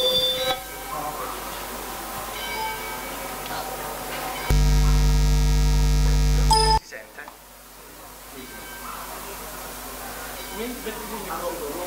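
A man speaks calmly through a microphone in a room.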